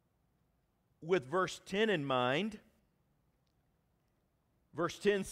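A middle-aged man speaks expressively into a microphone.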